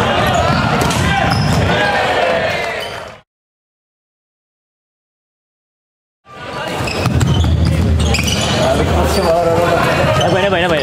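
Sneakers squeak on a sports floor.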